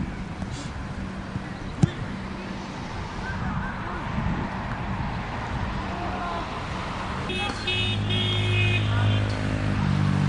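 Men shout to each other across an open field, some distance away.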